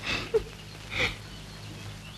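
A young woman giggles softly.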